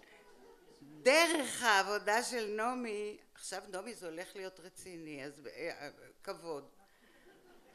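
An elderly woman reads aloud expressively into a microphone in a large hall.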